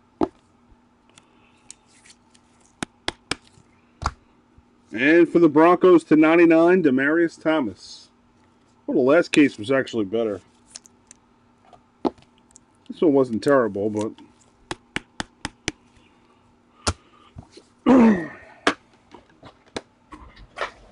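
Plastic card cases click and tap as they are handled.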